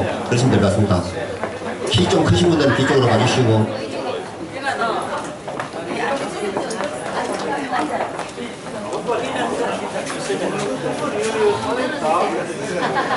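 A crowd of men and women chatter and call out close by.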